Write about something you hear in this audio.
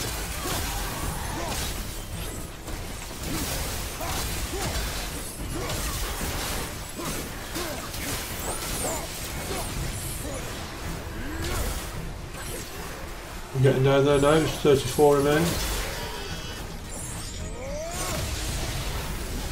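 Blades clash and strike in a fast, noisy fight.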